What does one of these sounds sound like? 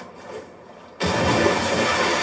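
A body splashes heavily into water.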